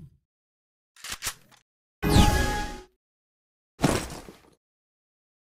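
Soft menu clicks and chimes sound.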